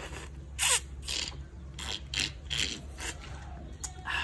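A man slurps coconut water noisily.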